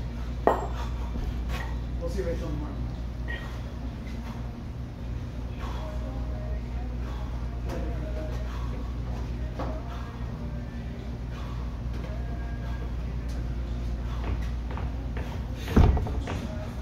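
Two kettlebells knock together.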